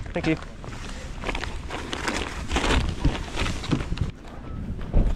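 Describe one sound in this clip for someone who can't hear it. A plastic bag rustles and crinkles as it is handled up close.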